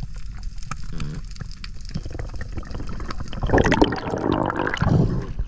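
Water swirls and bubbles, heard muffled from underwater.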